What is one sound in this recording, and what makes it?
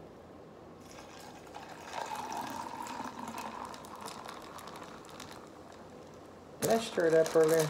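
Beer pours and fizzes into a glass.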